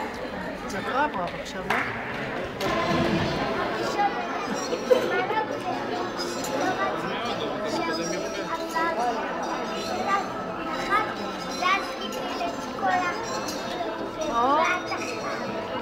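Children's high voices call out now and then.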